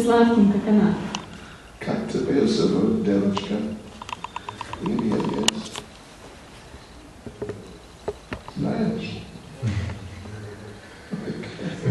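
Several women chat with animation nearby.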